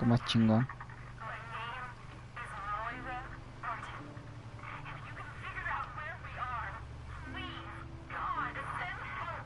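A man speaks urgently and low, close by.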